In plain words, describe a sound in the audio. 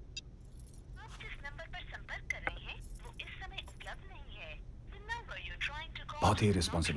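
A woman speaks quietly on a phone.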